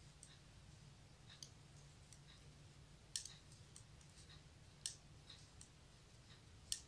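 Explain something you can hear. Knitting needles click and tap softly against each other.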